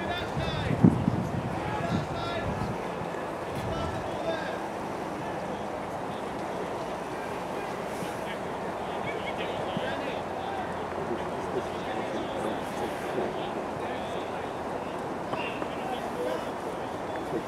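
Men talk and call out in the distance outdoors.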